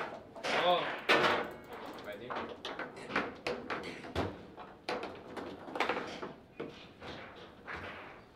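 A foosball ball clacks sharply against plastic figures and the table walls.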